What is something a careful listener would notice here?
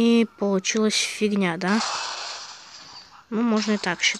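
Blocks crash and shatter as a structure collapses.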